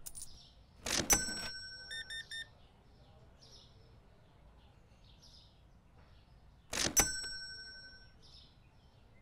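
A card payment terminal chimes with a bright electronic tone.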